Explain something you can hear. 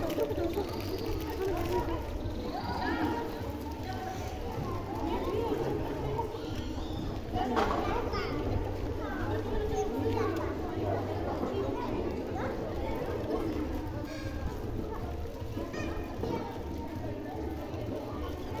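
A crowd of children and women chatter and call out nearby outdoors.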